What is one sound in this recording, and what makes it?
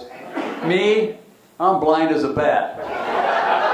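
An elderly man speaks into a microphone, heard over a loudspeaker in a large room.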